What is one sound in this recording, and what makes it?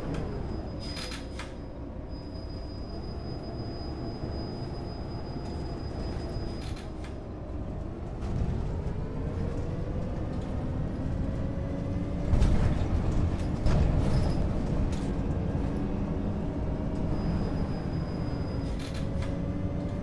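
Loud knocks and thumps sound as the bus bumps over the road.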